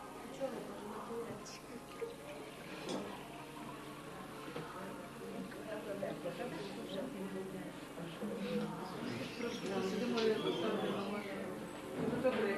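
A crowd of men and women chatter around a table nearby.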